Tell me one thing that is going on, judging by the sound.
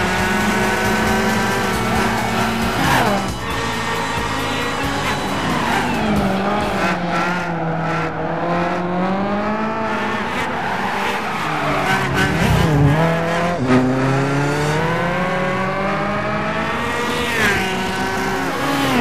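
A race car engine roars loudly, its pitch rising and falling as it shifts gears.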